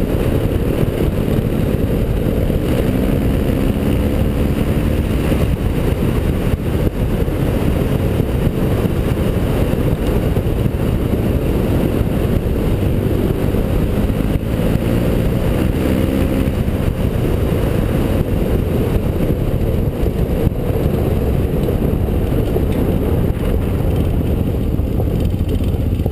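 Wind roars loudly over the microphone.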